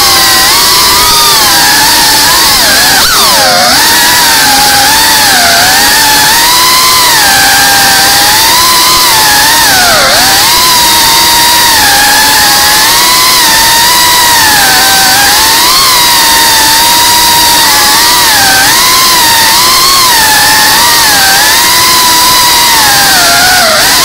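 A small drone's motors whine loudly and close, rising and falling in pitch as it weaves about.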